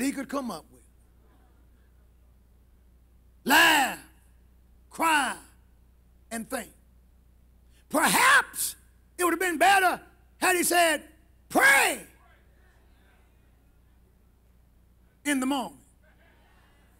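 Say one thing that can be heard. A man preaches loudly and with fervour through a microphone, in short bursts with pauses.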